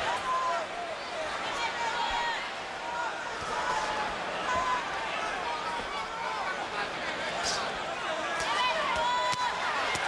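Gloves thud on bodies as boxers trade punches.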